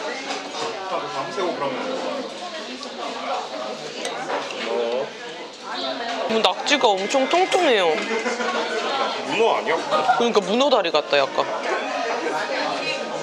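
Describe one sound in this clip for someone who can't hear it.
A metal ladle clinks against a bowl.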